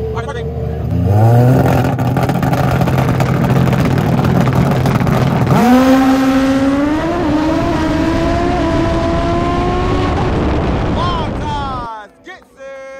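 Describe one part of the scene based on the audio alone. A motorcycle engine roars at full throttle, climbing in pitch through each gear change.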